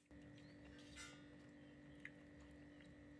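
Chopsticks tap against a dish.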